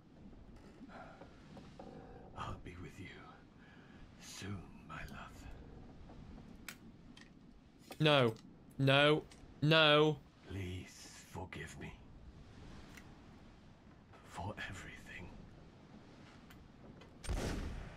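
A young man speaks quietly into a microphone.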